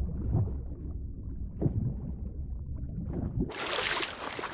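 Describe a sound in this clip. Water rumbles low and muffled, as if heard from under the surface.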